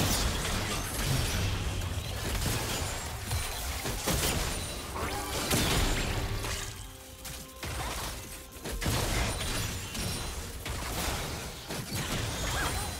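Spell blasts and impacts crackle and boom in a game battle.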